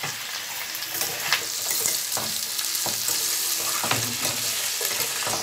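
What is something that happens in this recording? A spatula scrapes and clatters against a metal pan.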